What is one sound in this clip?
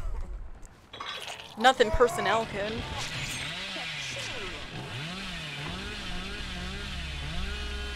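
A chainsaw engine roars and revs.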